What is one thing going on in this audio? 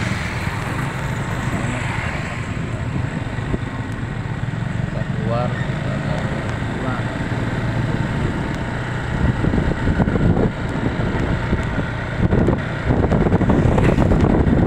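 Another motorcycle passes close by.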